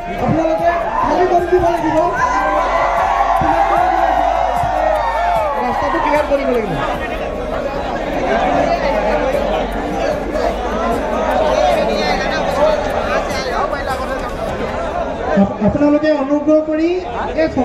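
A man sings loudly through a microphone and loudspeakers in a large echoing hall.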